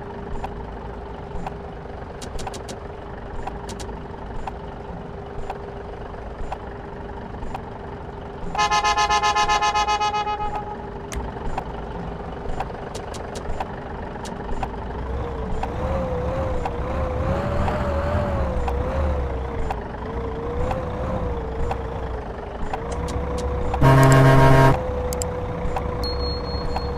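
A bus engine idles with a low steady hum, then revs up as the bus pulls away.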